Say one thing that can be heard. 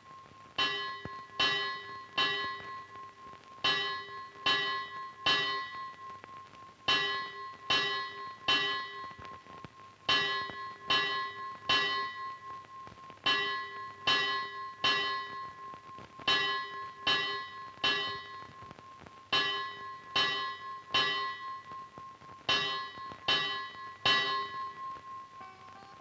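A bell rings out in steady groups of three ringing strikes.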